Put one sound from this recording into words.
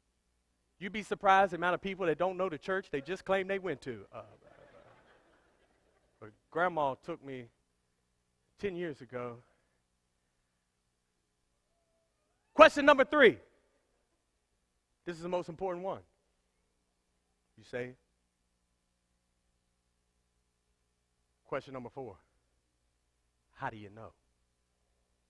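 A man speaks to an audience in a hall, with pauses between phrases.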